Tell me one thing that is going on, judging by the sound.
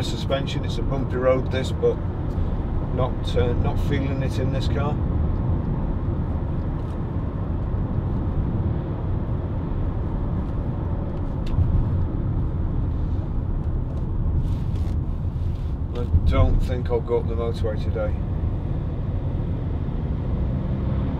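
A car engine hums steadily with road noise while driving.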